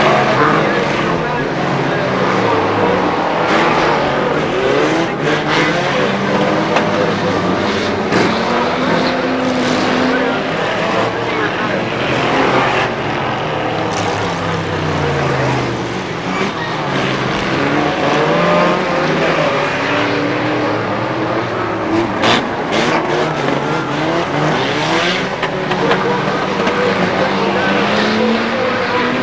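Several car engines roar and rev loudly as race cars speed around a track.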